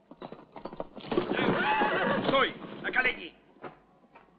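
A horse's hooves clatter over rocky ground.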